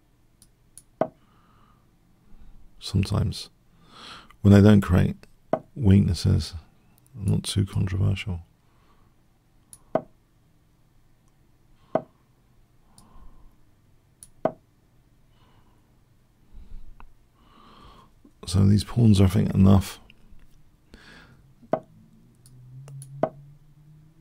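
Short clicks sound as chess pieces are moved.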